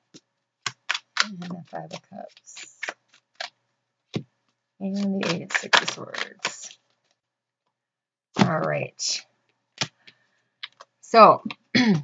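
Playing cards slap and slide softly onto a cloth-covered table.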